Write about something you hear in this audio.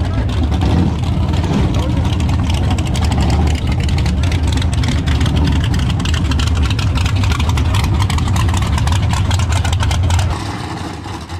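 A car engine roars loudly and revs.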